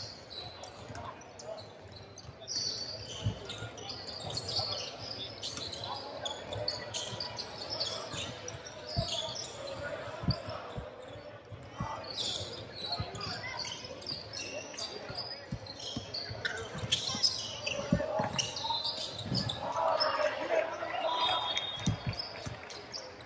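Young male players call out and shout to each other.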